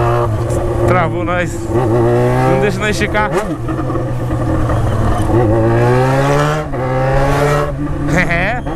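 A motorcycle engine hums steadily and revs up and down as it rides close by.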